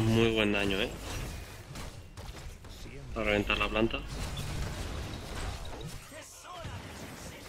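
Video game battle effects of spells and weapon hits clash.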